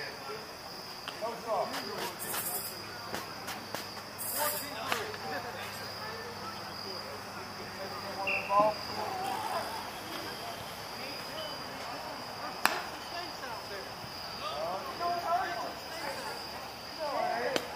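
Men call out across an open field at a distance.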